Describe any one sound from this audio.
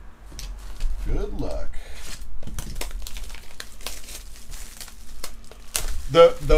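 Plastic wrap crinkles as hands handle a box.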